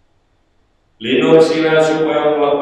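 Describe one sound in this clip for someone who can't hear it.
A middle-aged man chants loudly into a microphone.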